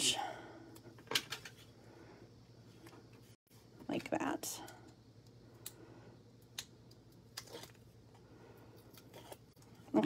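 Paper rustles and crinkles as hands fold and handle it.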